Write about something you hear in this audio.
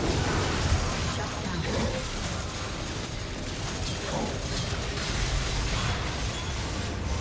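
Fantasy combat sound effects whoosh and crackle in a fast skirmish.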